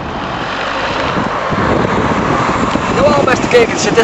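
A car engine hums as a car drives past.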